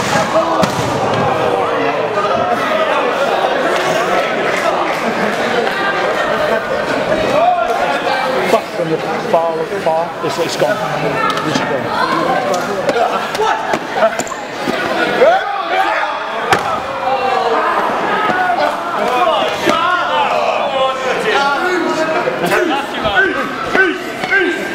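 A crowd of spectators shouts and jeers in a large echoing hall.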